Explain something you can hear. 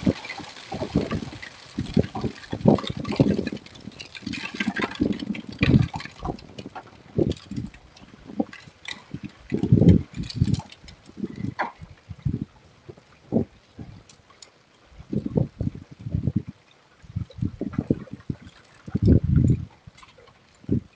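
Heavy rain pours down outdoors with rapid pattering.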